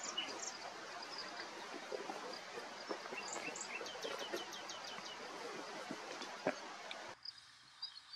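A bird rustles through dry grass and leaves.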